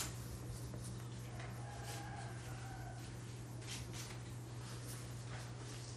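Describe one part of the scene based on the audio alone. A cloth rubs and squeaks across a whiteboard.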